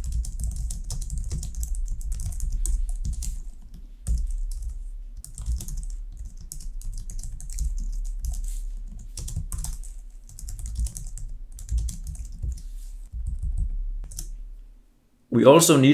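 Keys click rapidly on a computer keyboard.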